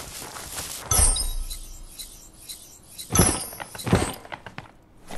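A bright chime sounds as an item is picked up.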